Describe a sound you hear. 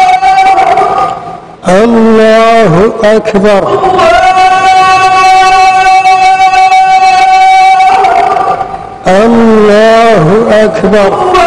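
A man chants a prayer melodiously into a microphone, his voice ringing in a large echoing hall.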